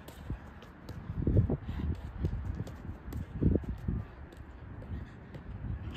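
Footsteps patter quickly on artificial grass.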